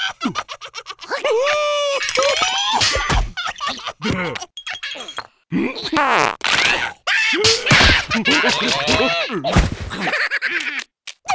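A cartoon larva squeals and babbles excitedly.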